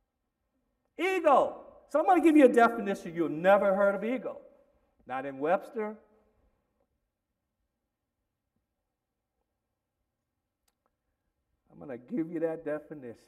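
A man speaks with expression into a microphone, with long pauses.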